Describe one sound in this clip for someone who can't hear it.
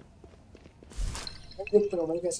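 A bright magical whoosh sounds in a game.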